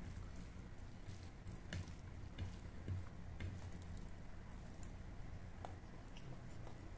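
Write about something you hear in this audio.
Food squishes and crackles softly as fingers mix it up close.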